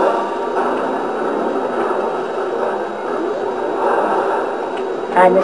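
A cartoon car engine hums steadily from a video game played through a television speaker.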